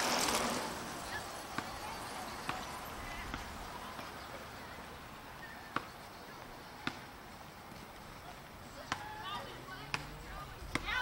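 A basketball bounces on the pavement.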